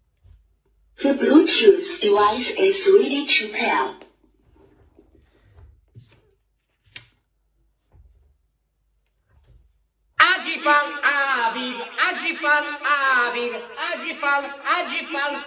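A young man sings loudly and with strain into a karaoke microphone, heard through its small speaker.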